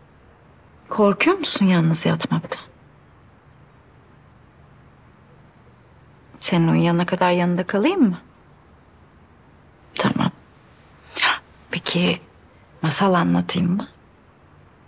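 A young woman speaks softly and gently, close by.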